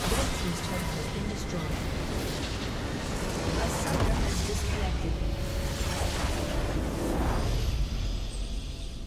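Game battle effects crash and explode loudly.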